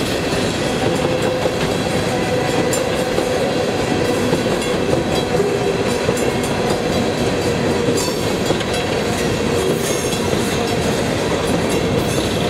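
Steel wheels clank and squeal on the rails.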